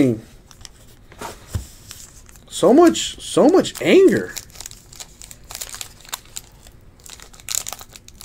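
A foil wrapper crinkles and rustles as it is handled and torn open.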